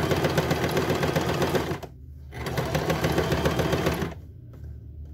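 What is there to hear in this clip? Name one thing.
A sewing machine runs in fast, rattling bursts.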